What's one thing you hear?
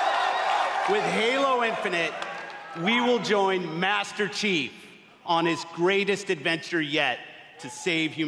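A middle-aged man speaks calmly into a microphone to an audience.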